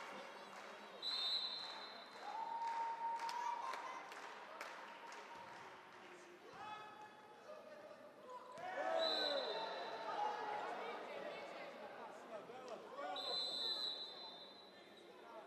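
A referee's whistle blows sharply several times.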